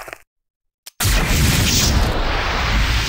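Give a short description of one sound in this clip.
Gunfire and explosions roar loudly.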